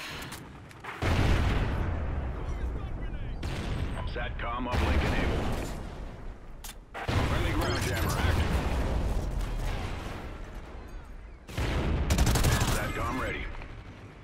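Gunfire rattles in rapid, loud bursts.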